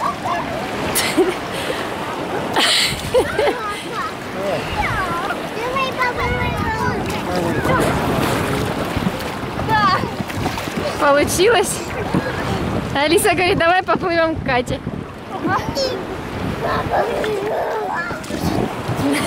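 Water splashes as people move in the sea.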